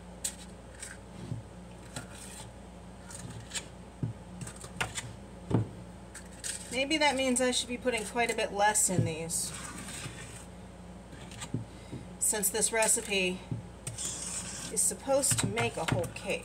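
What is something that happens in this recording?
A metal scoop scrapes and clicks against a metal bowl.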